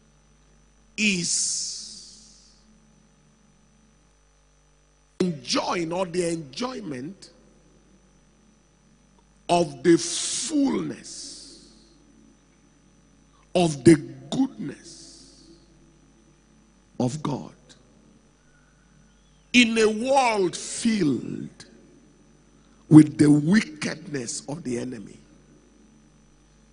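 A man preaches with animation into a microphone, in bursts with pauses between them.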